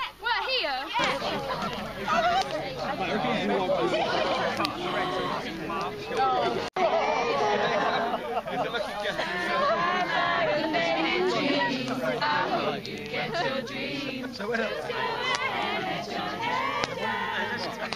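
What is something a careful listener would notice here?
A group of young people sing together outdoors.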